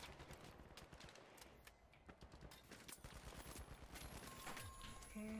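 Rapid gunshots crack in a video game.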